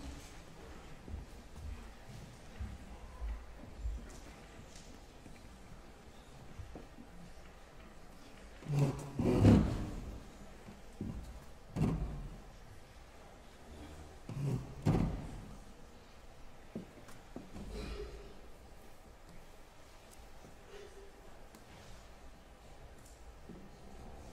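A grand piano plays softly in a large echoing hall, with occasional loud low chords.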